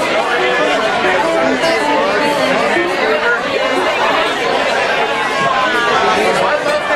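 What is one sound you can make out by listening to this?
A live band plays guitars, keyboard and drums.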